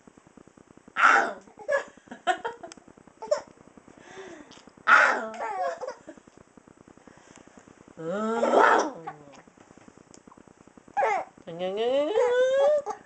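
A baby laughs and squeals loudly, close by.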